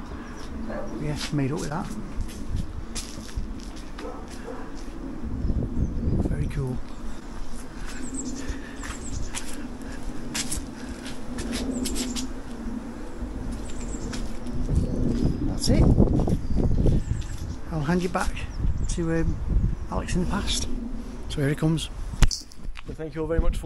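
An elderly man talks calmly close to the microphone.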